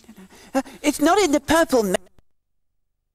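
A high, playful character voice speaks with animation, close up.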